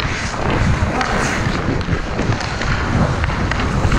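A puck clacks off a hockey stick.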